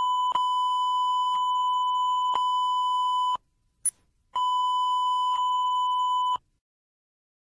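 A steady high test tone sounds, pausing briefly before returning.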